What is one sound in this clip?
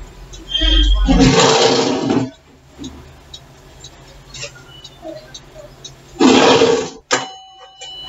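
An alarm clock rings loudly in short bursts.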